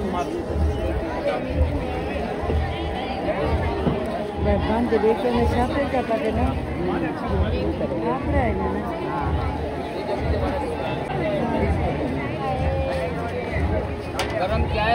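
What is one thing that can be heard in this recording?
A crowd of men talks and calls out nearby.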